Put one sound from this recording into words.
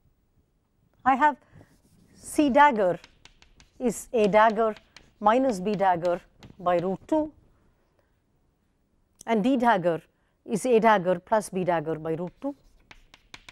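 A woman speaks calmly and clearly into a close microphone, as if lecturing.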